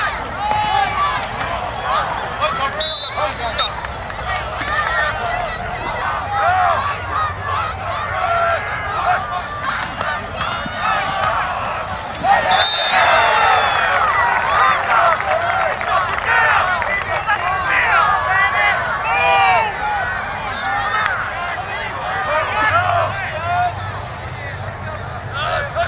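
A large crowd of spectators cheers and chatters outdoors.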